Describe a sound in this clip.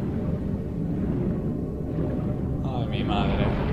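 Bubbles gurgle and rise.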